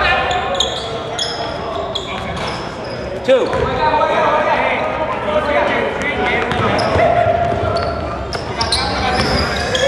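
Sneakers squeak sharply on a hard floor in a large echoing gym.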